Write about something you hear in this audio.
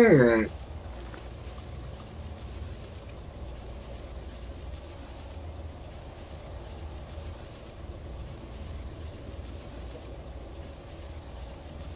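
Soft menu clicks tick as pages turn.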